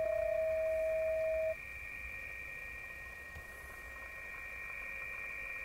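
A computer speaker plays steady, shrill electronic tones.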